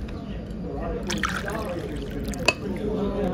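Milk pours into a cup.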